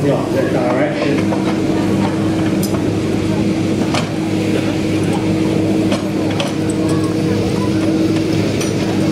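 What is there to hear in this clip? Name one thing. A crowd murmurs outdoors.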